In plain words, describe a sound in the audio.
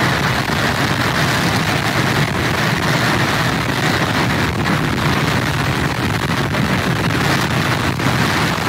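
Rough surf crashes and churns against pier pilings.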